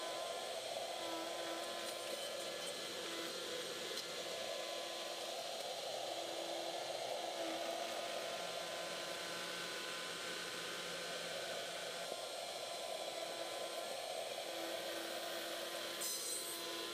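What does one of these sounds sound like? A small motorised machine hums steadily.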